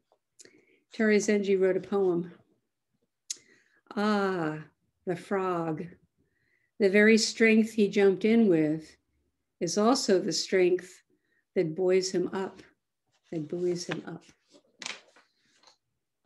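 An elderly woman speaks calmly and slowly, close to a microphone, with pauses.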